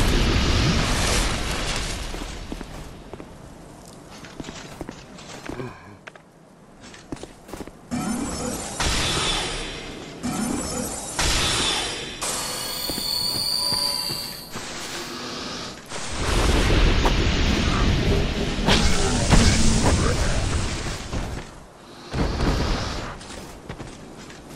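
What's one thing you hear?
Armoured footsteps clank on stone and grass.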